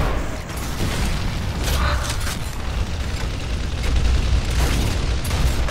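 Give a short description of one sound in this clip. Assault rifle fire rattles in a video game.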